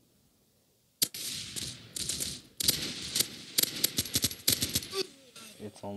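Rapid gunshots fire in sharp bursts.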